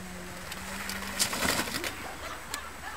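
A bicycle crashes onto grass.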